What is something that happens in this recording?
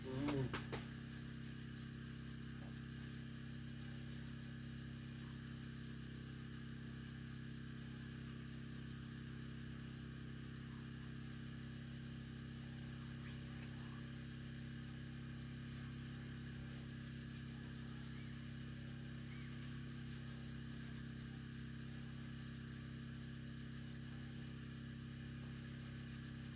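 A cloth rubs softly over a metal surface.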